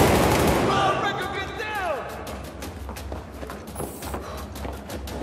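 Rifle shots crack in quick bursts, echoing around a large hall.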